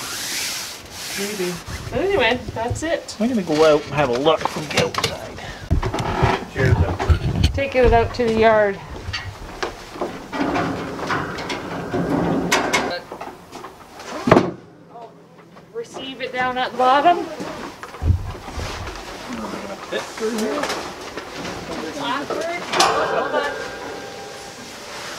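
A woman talks casually nearby, outdoors.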